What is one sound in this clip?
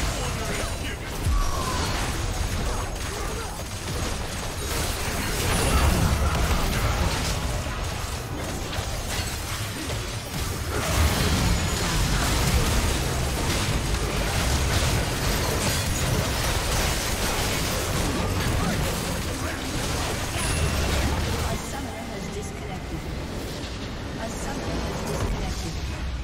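Game spell effects and explosions crackle and boom.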